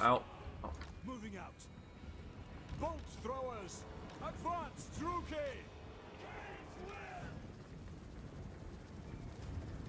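A large battle rages with weapons clashing.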